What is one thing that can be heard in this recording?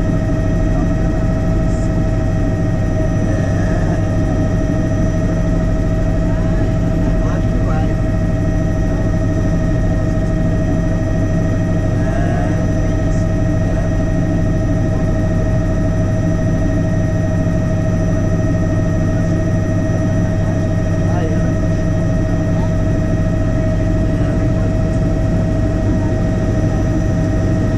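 A helicopter engine and rotor drone loudly and steadily from inside the cabin.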